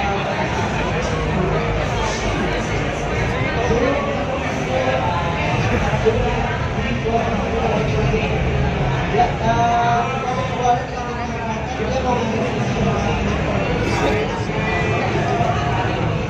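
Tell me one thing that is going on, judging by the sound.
Fighting game sounds of punches and kicks play through loudspeakers.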